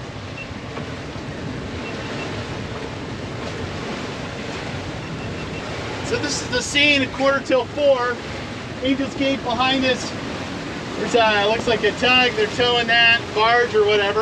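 Waves rush and splash steadily against a moving boat's hull.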